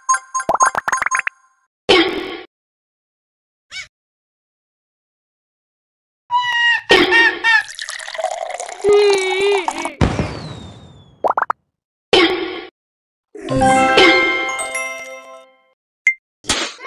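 Bright electronic game chimes and jingles play in short bursts.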